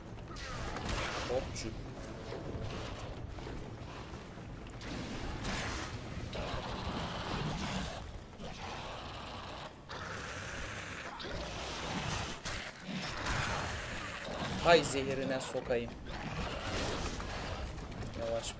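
Fire bursts with a roaring whoosh.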